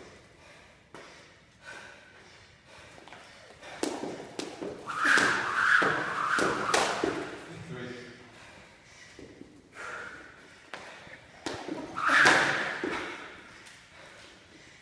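A jump rope slaps the floor in quick repeated clicks.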